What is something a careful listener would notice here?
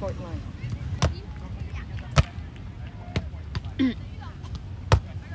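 A volleyball is struck with a sharp slap several times.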